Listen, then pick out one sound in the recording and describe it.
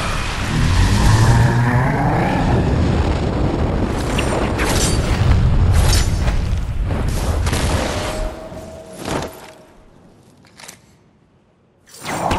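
Heavy metal crashes and booms as a giant machine moves.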